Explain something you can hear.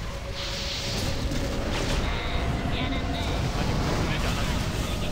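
Fighting sound effects crash and whoosh rapidly without pause.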